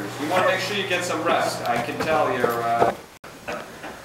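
A young man talks close by, with animation.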